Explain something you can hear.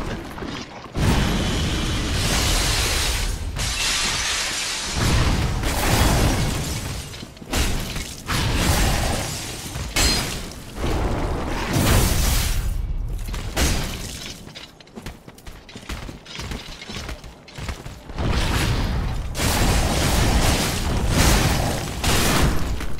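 Crystals crash and shatter with loud bursts.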